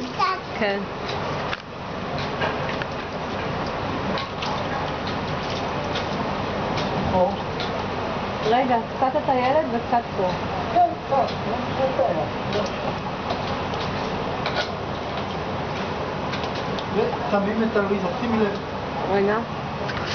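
Water splashes as a young child plays in a small paddling pool.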